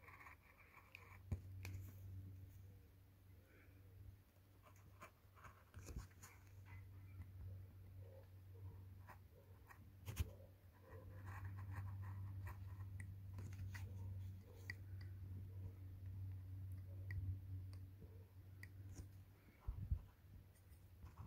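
A craft knife blade scratches and scrapes softly across tape.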